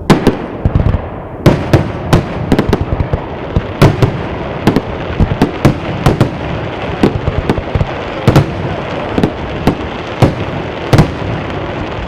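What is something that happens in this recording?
Fireworks explode in loud, sharp bangs overhead, echoing outdoors.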